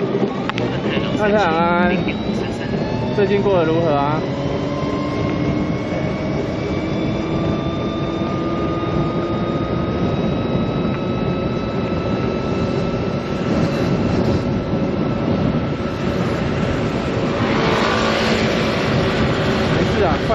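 A motorcycle engine hums steadily and slowly rises in pitch as it speeds up.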